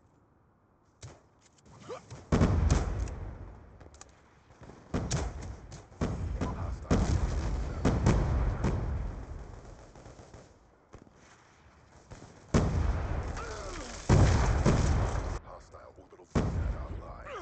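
Gunshots crack in loud bursts.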